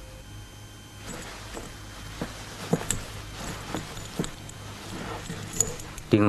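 Clothes rustle as a woman rummages through a shelf.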